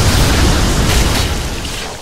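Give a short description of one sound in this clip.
A sword clangs against hard armour.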